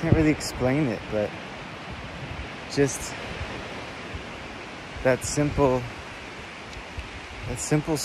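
A man speaks close up, in short bursts with pauses.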